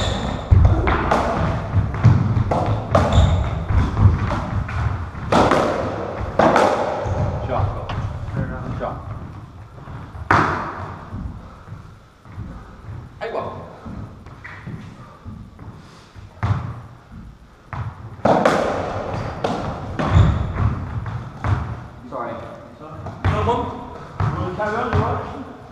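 Shoes squeak and thud on a wooden floor.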